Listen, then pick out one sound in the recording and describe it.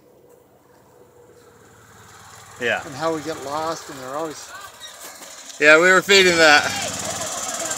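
A small motor cart drives closer with a rising hum.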